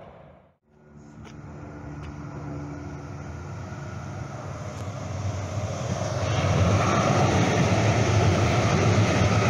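A light rail train approaches and rumbles past close by, growing steadily louder.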